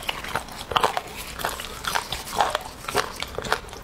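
Scissors snip through cooked meat.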